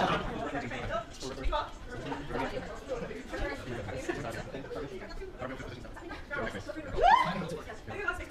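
A group of young people chatter and laugh nearby in an echoing hall.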